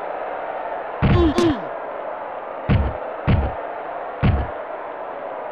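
Game players collide with heavy thuds.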